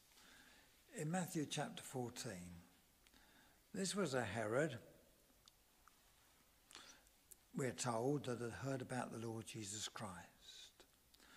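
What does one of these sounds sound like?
An elderly man speaks slowly and deliberately into a microphone, pausing between phrases.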